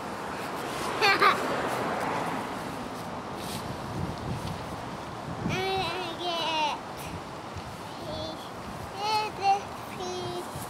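A young child squeals and babbles happily close by.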